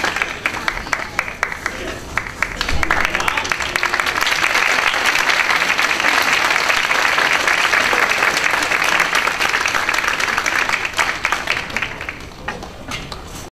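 A large band plays loudly in an echoing hall.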